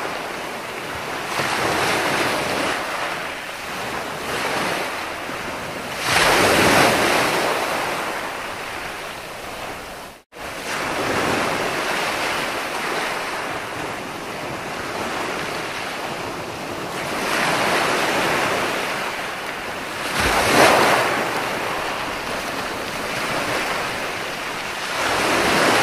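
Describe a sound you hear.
Ocean waves break and wash up onto the shore in surging swells.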